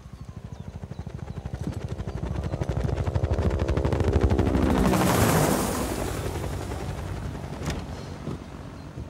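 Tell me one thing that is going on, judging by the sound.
A helicopter flies past, its rotor roar swelling and then fading.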